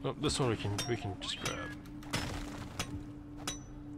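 A pickaxe strikes rock with sharp knocks.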